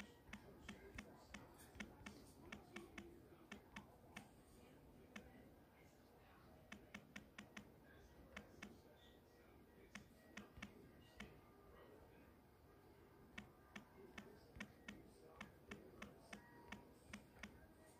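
A phone keyboard clicks in quick bursts as keys are tapped.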